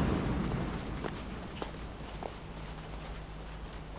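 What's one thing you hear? Footsteps crunch slowly on wet ground.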